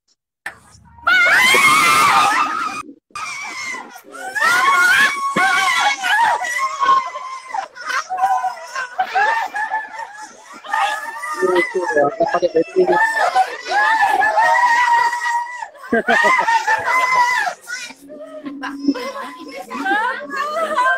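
A woman laughs and talks excitedly over a video call.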